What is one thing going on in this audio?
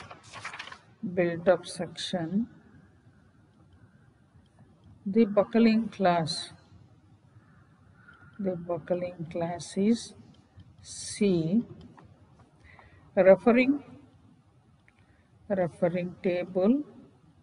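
A woman speaks calmly in short bursts over an online call.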